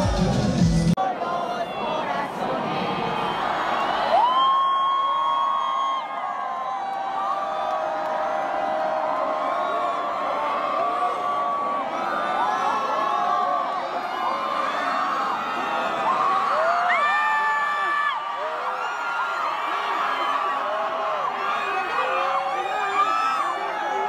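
A large crowd screams and cheers loudly in a big open arena.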